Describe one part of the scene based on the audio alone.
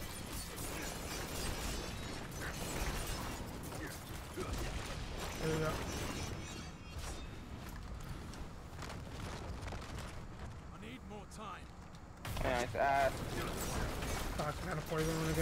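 Magic blasts and impacts crackle and thump in a fast fight.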